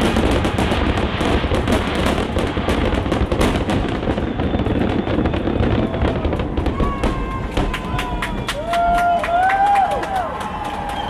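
Fireworks crackle and pop in rapid bursts outdoors.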